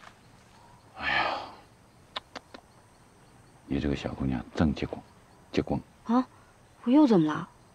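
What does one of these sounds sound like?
A man speaks in a low, hushed voice close by.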